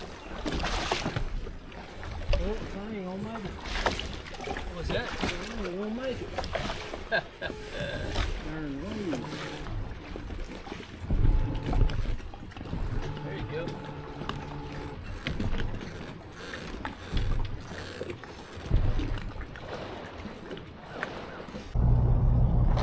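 Water laps against a boat hull.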